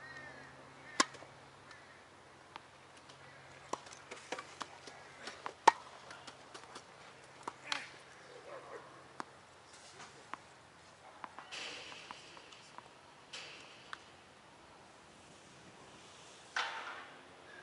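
Tennis balls pop off rackets on an outdoor court.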